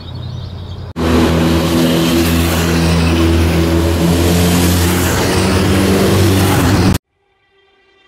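Motorcycle engines roar as the bikes ride past.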